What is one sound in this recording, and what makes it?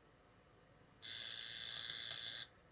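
A radio hisses with static between stations.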